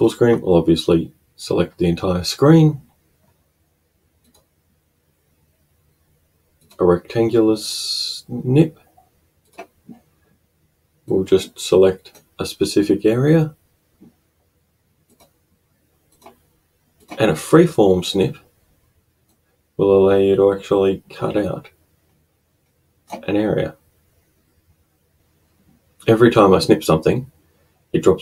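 A man speaks calmly and close to a microphone, in short bursts with pauses.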